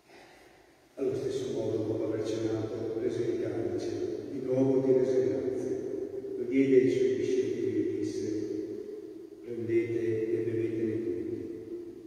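An elderly man chants through a microphone in a large echoing church.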